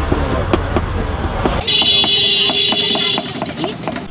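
A knife chops rapidly on a cutting board.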